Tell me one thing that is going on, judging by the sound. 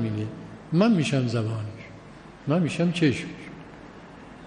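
An elderly man speaks slowly and deliberately into a microphone, with pauses.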